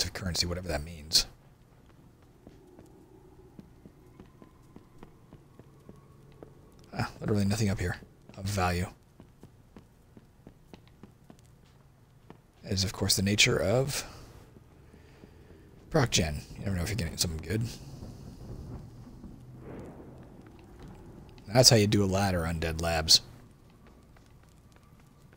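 Light footsteps tap on a hard floor.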